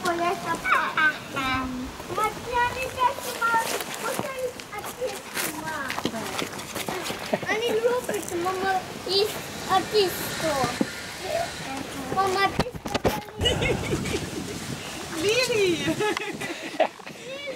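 A small child babbles and squeals excitedly close by.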